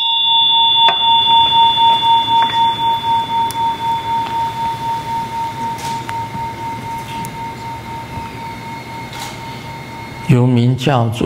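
A small hand bell rings with a clear, steady tone that slowly fades away.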